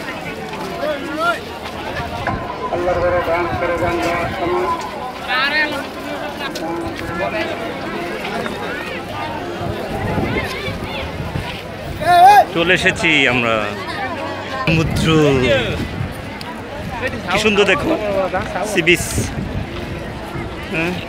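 A large outdoor crowd of men and women chatters with many overlapping voices.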